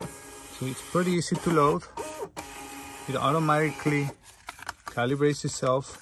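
A label printer whirs as it feeds out paper.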